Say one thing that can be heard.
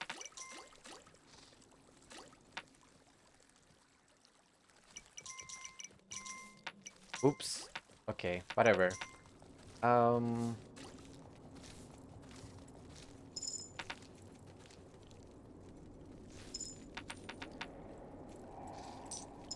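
Short bright electronic chimes ring out.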